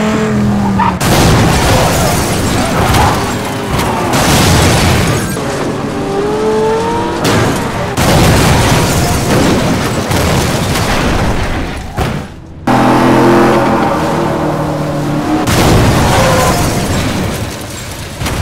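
A car crashes with a loud metallic smash.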